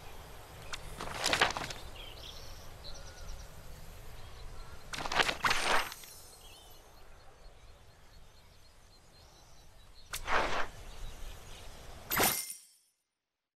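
Soft whooshing game chimes sound as menu panels open and close.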